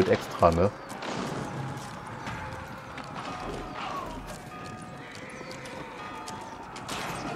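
Weapons clash and soldiers fight in a battle.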